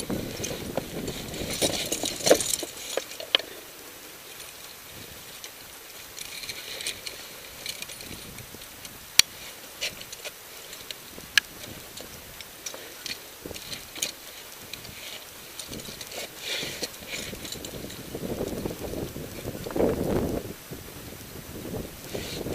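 Crampons and ice tools knock and scrape on ice.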